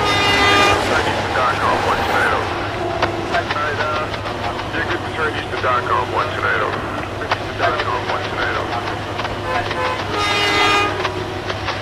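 A train horn blows loudly.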